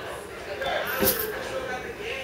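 A bag is set down on a cushioned seat with a soft thud.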